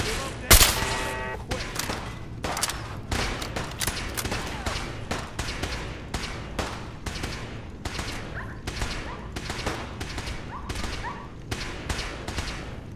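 Bursts of gunfire crack repeatedly nearby.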